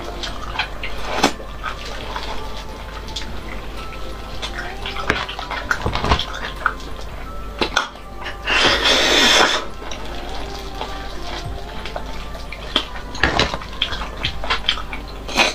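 A woman chews and sucks wetly on food close to a microphone.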